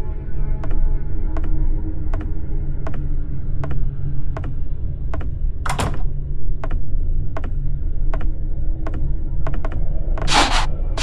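Footsteps tap steadily on a hard floor.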